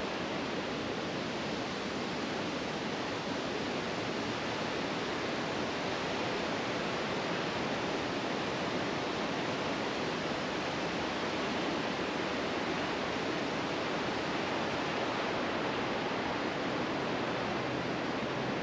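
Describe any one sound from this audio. Steady rain patters on leaves and grass outdoors.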